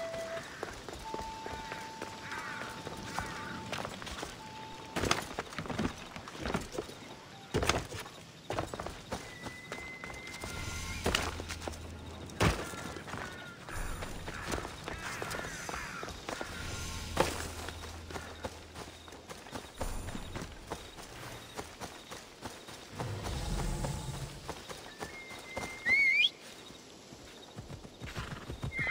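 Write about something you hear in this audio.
Footsteps patter quickly over stone and grass.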